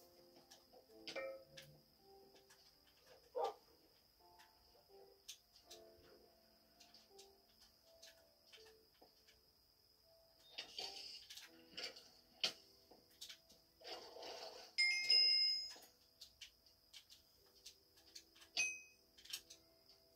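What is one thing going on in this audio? Soft video game music plays through a television speaker.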